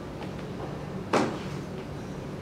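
A plastic container knocks against a metal counter.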